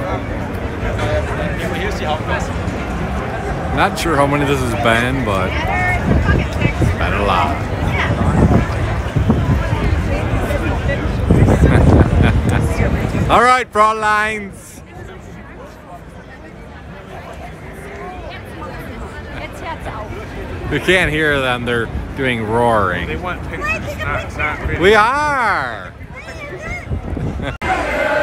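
Two young women laugh and talk close by.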